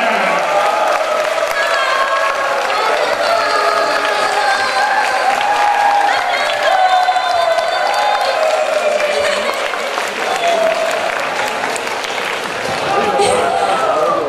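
Young women sing together through loudspeakers.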